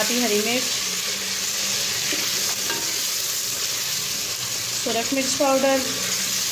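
Oil sizzles and crackles in a hot pot.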